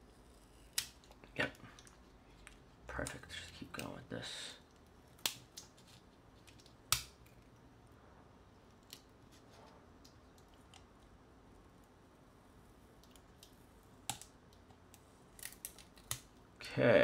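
Foil tape crinkles and rustles close by.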